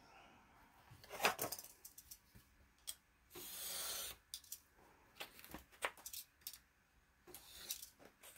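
A blade scores and cuts paper along a ruler.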